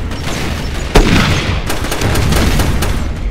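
A pistol fires loud sharp shots.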